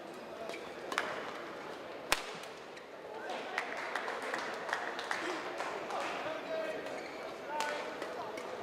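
A shuttlecock is struck sharply by rackets.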